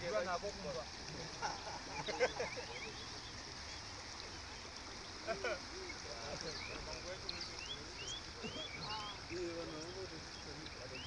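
Floodwater rushes and flows steadily outdoors.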